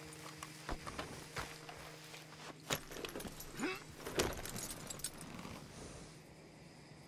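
A horse's hooves thud on soft ground.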